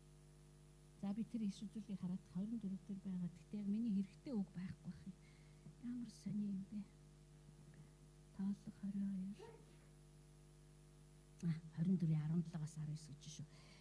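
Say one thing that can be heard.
A middle-aged woman speaks haltingly into a microphone, heard through a loudspeaker.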